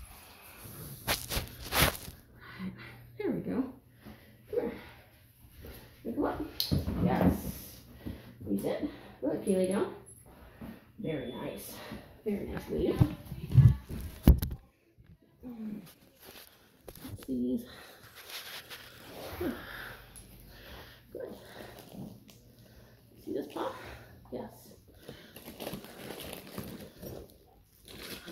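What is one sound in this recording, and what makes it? A woman talks softly and calmly close by.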